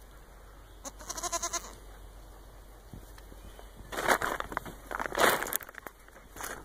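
Goats bleat loudly nearby.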